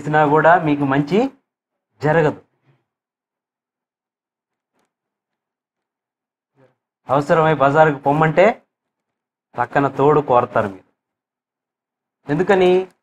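A man speaks steadily through a microphone, in bursts with pauses.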